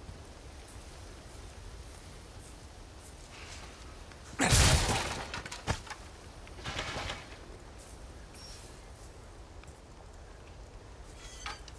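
Footsteps crunch on dry leaves and grass.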